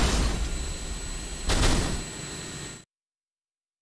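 Video game battle sounds rumble and clatter.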